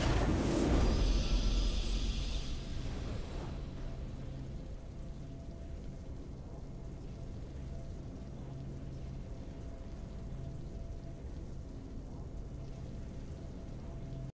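A triumphant fanfare swells and fades.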